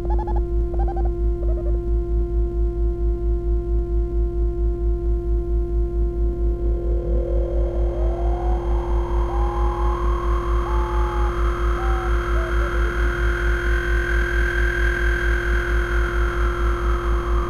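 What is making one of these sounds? A modular synthesizer pulses with a steady, fast low thump and a droning tone.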